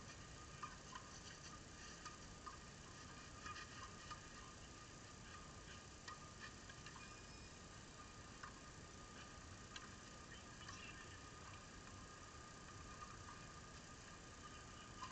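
Footsteps scuff softly on a gritty clay surface outdoors.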